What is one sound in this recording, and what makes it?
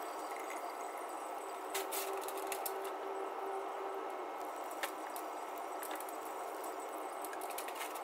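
Fluid trickles steadily down from a car's underside.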